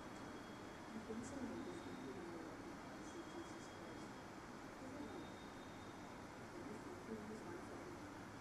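A man speaks quietly into a microphone in a large echoing hall.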